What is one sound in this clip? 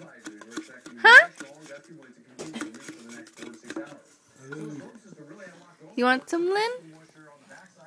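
A baby squeals loudly in short, high, rising bursts.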